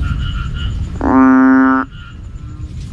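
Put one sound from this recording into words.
A frog gives a single loud, droning croak close by.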